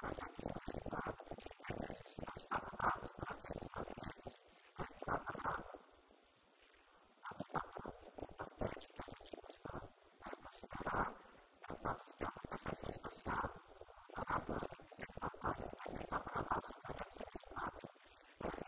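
A man speaks steadily into a microphone, heard through a loudspeaker in an echoing room.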